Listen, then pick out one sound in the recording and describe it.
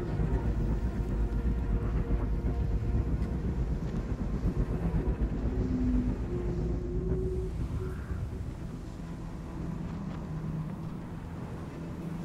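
Strong wind howls and roars, easing a little toward the end.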